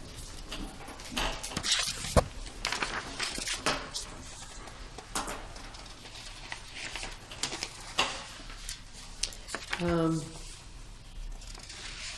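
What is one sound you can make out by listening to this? Paper rustles as a man handles a sheet.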